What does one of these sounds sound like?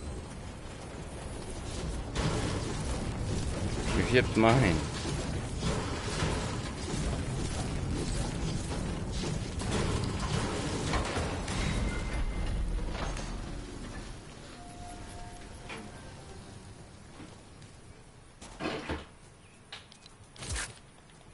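A middle-aged man talks into a microphone.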